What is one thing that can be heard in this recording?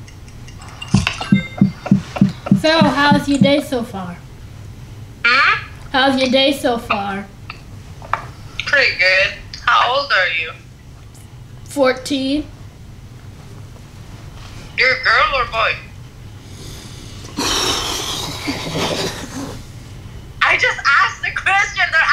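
A young woman talks through an online call.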